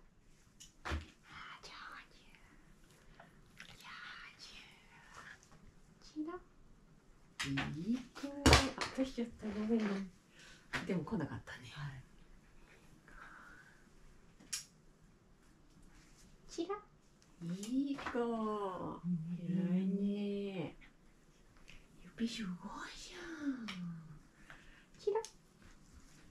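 A young woman talks to a dog in a high, animated voice, close by.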